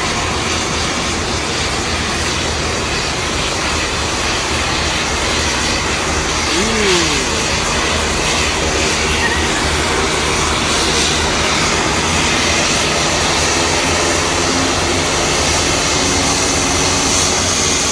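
A helicopter's rotor thuds steadily as it flies close by.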